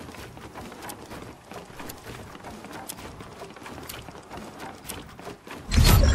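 Wooden ramps are rapidly built with sharp clacks.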